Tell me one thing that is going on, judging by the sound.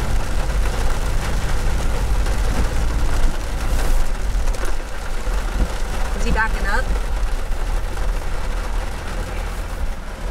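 Heavy rain drums steadily on a car's roof and windshield.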